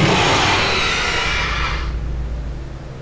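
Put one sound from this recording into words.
A creature lets out a loud, shrieking screech.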